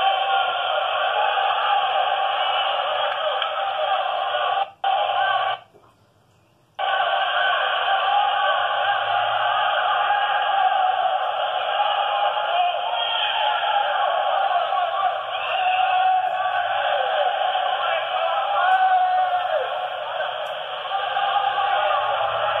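A crowd cheers and shouts loudly in a large echoing hall.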